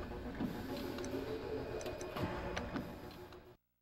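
A short menu blip sounds as a selection changes.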